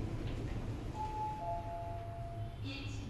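An elevator chime sounds two short tones.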